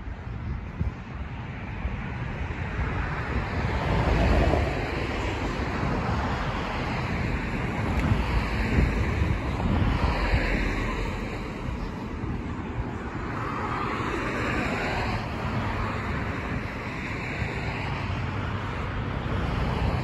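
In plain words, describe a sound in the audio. Wind blows outdoors, rumbling loudly.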